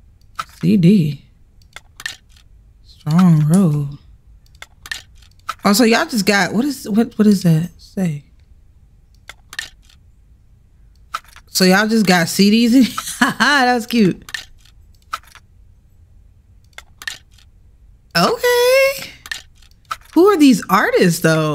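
A young woman speaks with animation into a headset microphone, close up.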